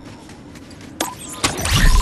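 A bright game chime sounds as a notice pops up.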